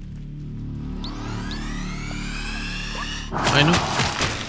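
A rising electronic whine builds up.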